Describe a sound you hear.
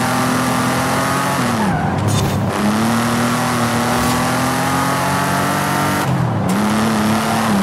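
A car engine roars at high revs, dropping briefly as the gears shift.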